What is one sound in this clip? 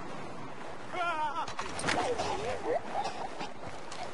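A man cries out in a struggle.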